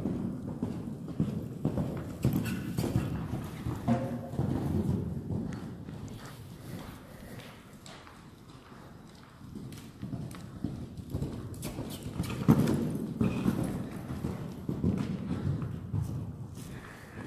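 Horse hooves thud on soft sand in a large indoor hall.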